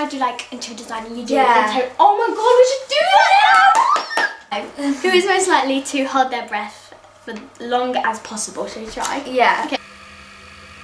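A second young girl laughs and chats close by.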